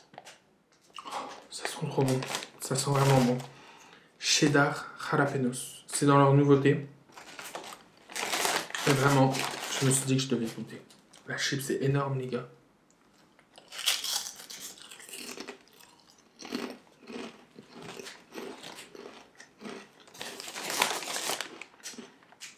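A crinkly snack bag rustles.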